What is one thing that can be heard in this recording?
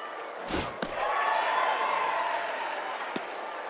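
A large crowd cheers loudly and then fades.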